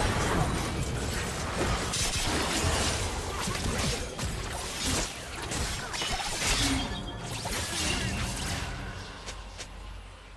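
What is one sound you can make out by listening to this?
Video game spell effects whoosh and crackle in a busy fight.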